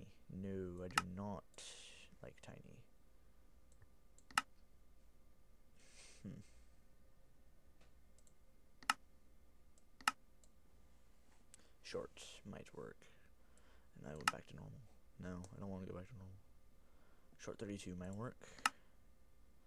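Sharp single clicks sound now and then.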